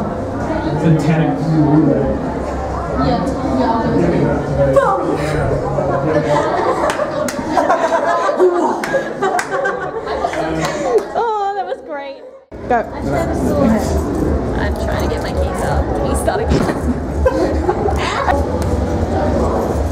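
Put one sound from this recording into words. A crowd of young adults chatters nearby.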